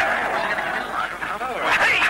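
A middle-aged man calls out loudly.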